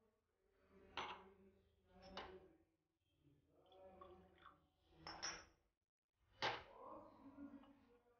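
Glass clinks against a hard counter.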